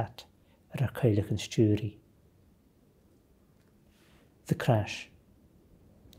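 A man reads aloud calmly and close by, with pauses between phrases.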